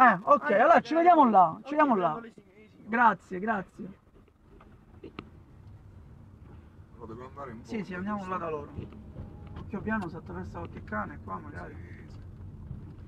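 A man speaks with animation close by inside a car.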